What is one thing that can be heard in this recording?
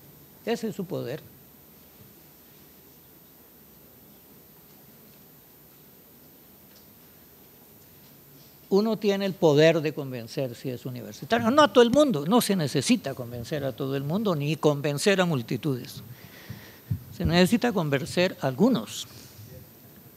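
An elderly man speaks calmly and with some animation into a microphone.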